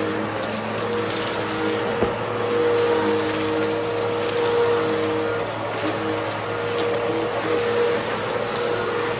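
A vacuum cleaner whirs steadily as it is pushed back and forth over a rug.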